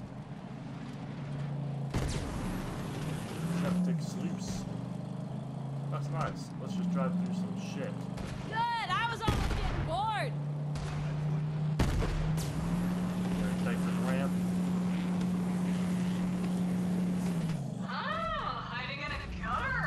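A game vehicle's engine drones.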